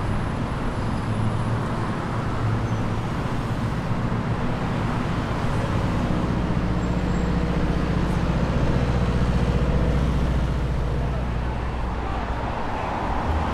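A large bus engine idles nearby with a low, steady rumble.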